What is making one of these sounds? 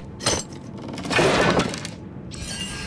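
A heavy chest creaks open with a magical shimmer.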